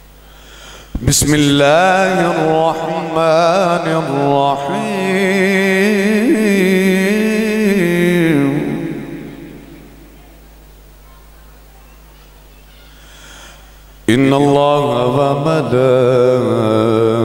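A man sings slowly with wavering held notes into a microphone.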